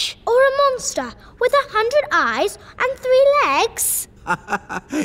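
A young girl speaks with excitement.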